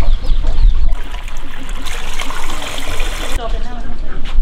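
Water pours from a hose into a metal pot.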